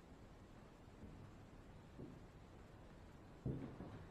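Footsteps creak on a wooden floor.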